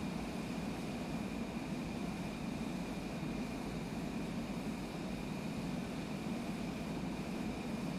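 A jet engine hums steadily and evenly.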